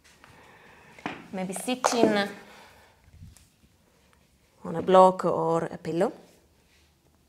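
A young woman speaks calmly and softly close to a microphone.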